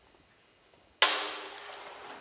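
A wooden block thumps down on a stage floor.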